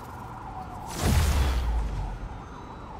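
A game sound effect whooshes with a burst of energy.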